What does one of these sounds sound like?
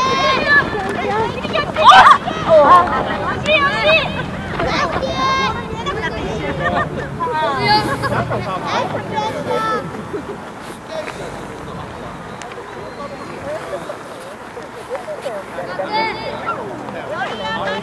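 Children shout and call out to each other across an open field.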